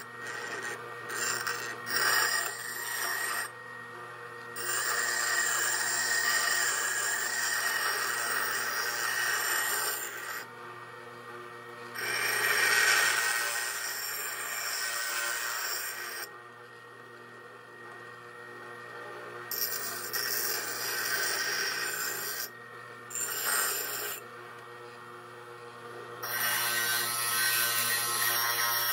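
A bench grinder hums steadily as it spins.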